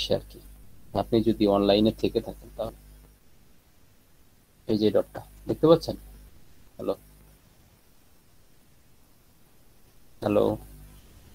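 A young man speaks calmly in short bursts over an online call.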